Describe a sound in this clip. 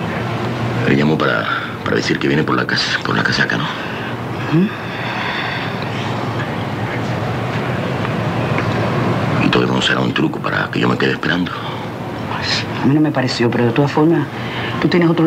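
A man speaks in a low, earnest voice close by.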